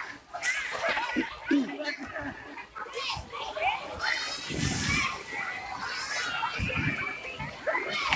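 Water splashes as children wade and play in shallow water.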